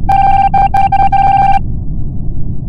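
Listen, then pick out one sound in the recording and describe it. A game plays a short electronic jingle.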